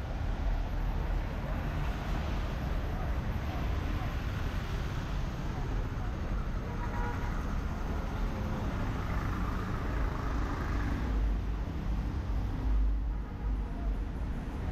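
Traffic rumbles along a street nearby.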